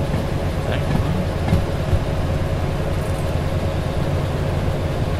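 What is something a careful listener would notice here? A diesel shunting locomotive engine rumbles.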